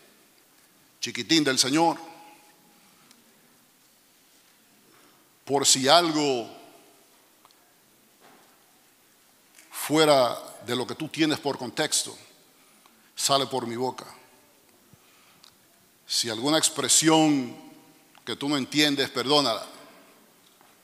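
A middle-aged man speaks with animation through a microphone in short bursts, in a reverberant hall.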